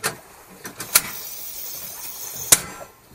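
A gas burner hisses as it lights.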